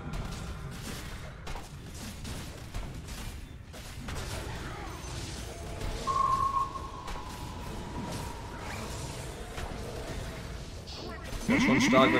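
Fighting game sound effects clash and chime.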